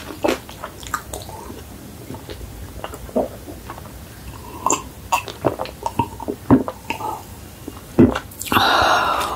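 A young woman gulps down a drink close to a microphone.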